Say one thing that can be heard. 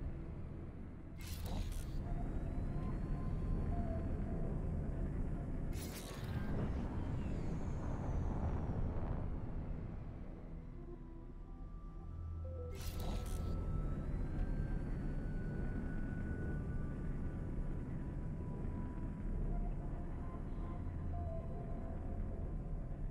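A spaceship engine rumbles low and steadily.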